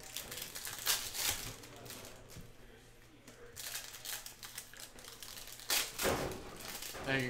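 Foil wrappers crinkle and rustle as packs are torn open.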